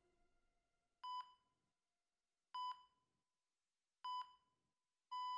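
A heart monitor beeps at a slow, steady pace.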